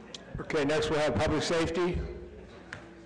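A man speaks loudly through a microphone in a large room.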